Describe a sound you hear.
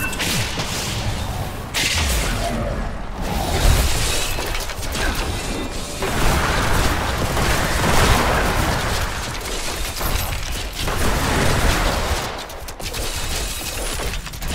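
Spells and weapons crash and clash in a fast, noisy fight.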